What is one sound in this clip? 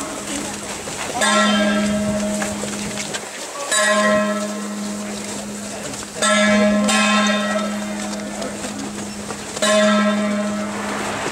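A crowd of people murmurs nearby.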